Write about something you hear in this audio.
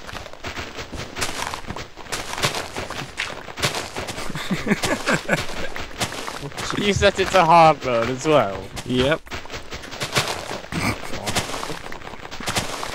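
Blocks of dirt and snow crunch in quick, repeated digging sounds.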